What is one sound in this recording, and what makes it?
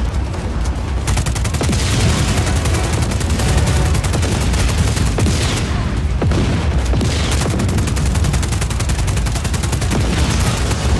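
A heavy machine gun fires rapid, continuous bursts.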